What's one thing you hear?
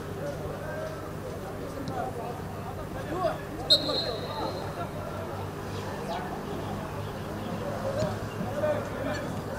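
Men shout and call to each other across an open outdoor pitch.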